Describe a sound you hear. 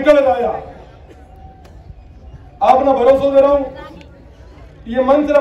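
A young man speaks forcefully into a microphone over a loudspeaker, in bursts with pauses.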